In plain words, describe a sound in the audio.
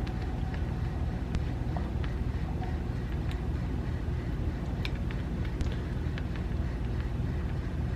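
Fingertips pat lightly and quickly on skin.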